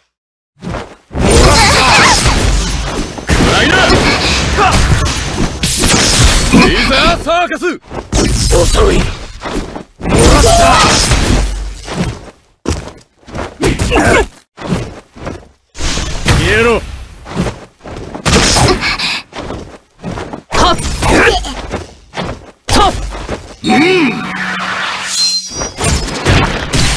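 Game sound effects of blasts and lightning strikes crackle in bursts.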